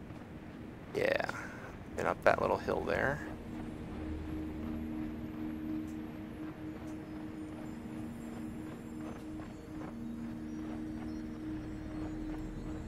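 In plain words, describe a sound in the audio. Small footsteps patter softly on dry dirt.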